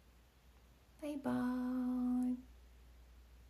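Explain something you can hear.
A young woman calls out a long, drawn-out greeting close by.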